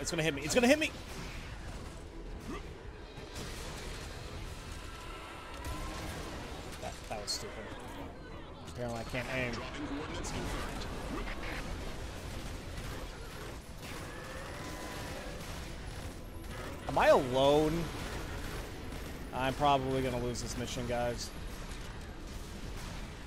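Energy weapons blast and roar in a video game.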